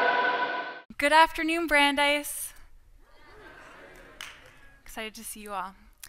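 A young woman speaks with animation through a microphone in a large hall.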